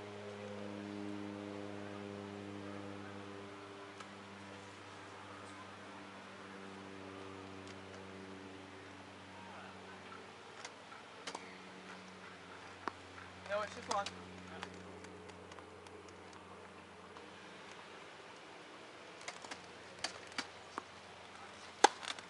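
Wheelchair wheels roll on a hard court.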